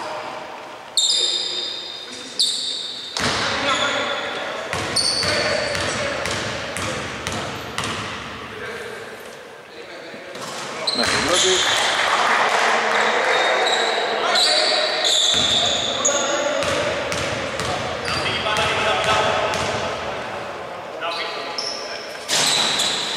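Sneakers squeak sharply on a hard court floor, echoing in a large hall.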